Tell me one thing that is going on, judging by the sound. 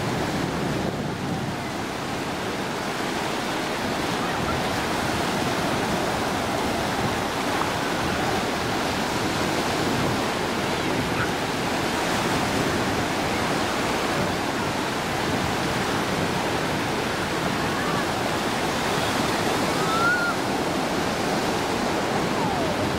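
Waves crash and wash onto the shore.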